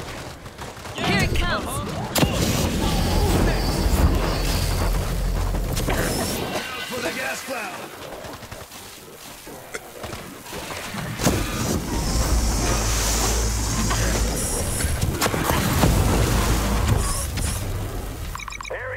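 A flamethrower roars loudly.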